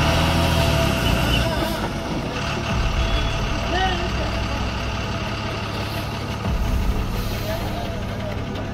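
A group of people chatter at a distance outdoors.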